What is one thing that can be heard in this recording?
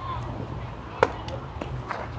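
A metal bat cracks sharply against a ball.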